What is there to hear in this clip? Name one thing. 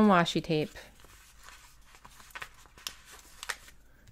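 Paper stickers rustle and crinkle softly as they are peeled off a sheet.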